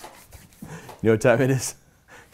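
A middle-aged man speaks loudly and with animation close to a microphone.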